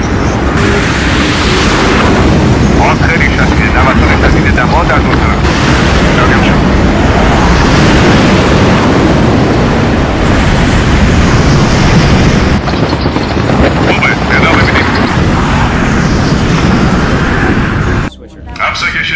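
A rocket engine roars loudly and steadily as a rocket lifts off.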